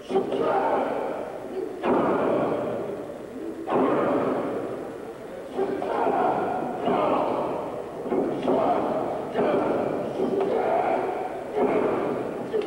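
A wrestler's body slams onto a ring mat.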